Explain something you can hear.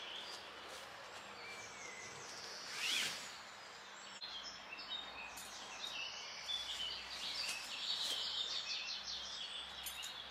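Leaves and branches rustle as a man moves brush about.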